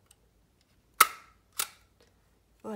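A hand tool snaps shut with sharp clicks.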